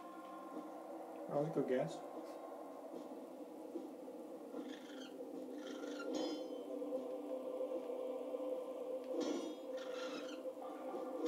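Game music plays steadily through a speaker.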